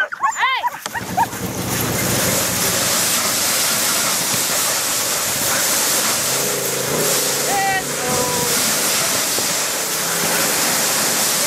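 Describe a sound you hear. A sled's runners hiss over snow.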